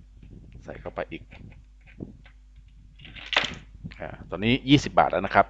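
A coin drops into a coin slot with a metallic clink.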